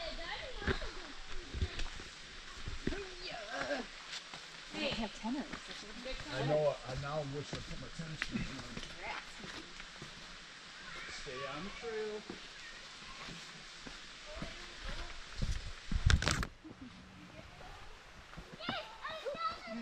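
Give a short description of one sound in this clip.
Footsteps scuff on a dirt trail.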